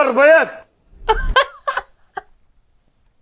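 A young man laughs loudly close to a microphone.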